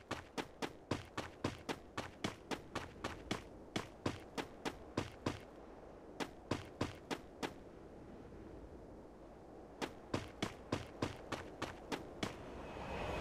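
Quick footsteps thud on the ground and floor.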